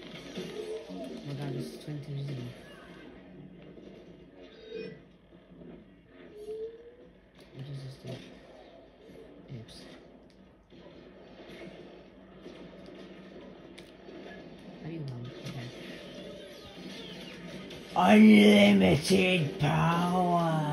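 Video game sounds play from a television's speakers.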